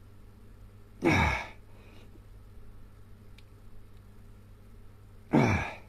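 A man grunts loudly with effort, very close by.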